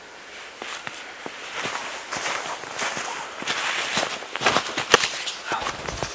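Footsteps crunch on frozen ground.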